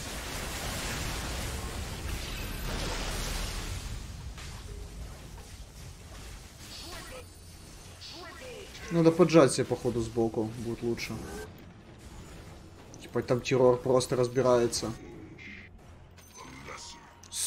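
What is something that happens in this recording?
Magic blasts and clashing blows from a fantasy battle crackle and boom.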